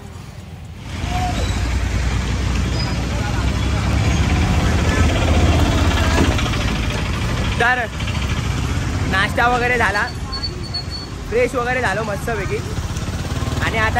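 Traffic rumbles steadily outdoors.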